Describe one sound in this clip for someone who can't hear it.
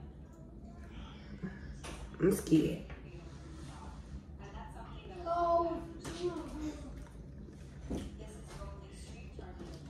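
A young woman chews food and smacks her lips softly.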